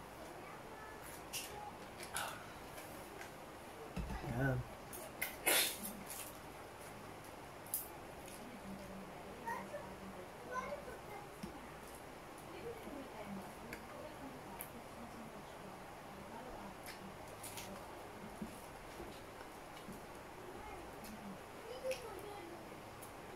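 A man handles food with his fingers, making small clicks and taps.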